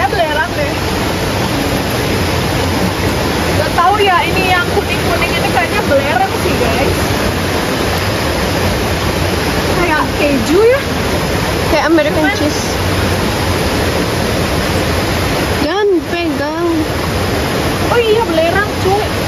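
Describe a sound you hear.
Water rushes and splashes steadily over rocks outdoors.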